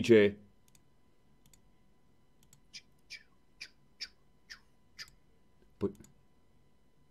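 A man speaks briefly and close into a microphone.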